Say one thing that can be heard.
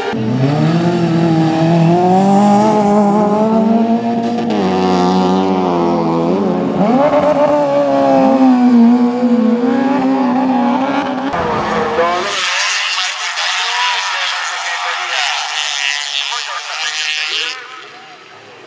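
Tyres spray gravel on a dirt track.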